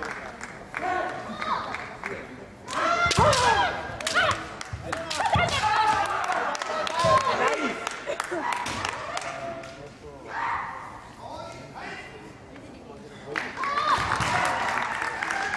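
Fencers shout loudly in an echoing hall.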